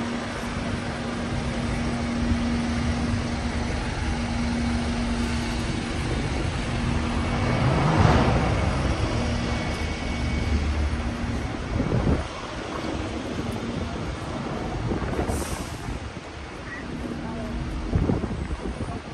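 A double-decker bus engine idles and hums nearby.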